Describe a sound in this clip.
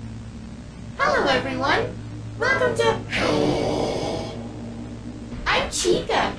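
A monstrous animatronic lets out loud, harsh shrieking screeches.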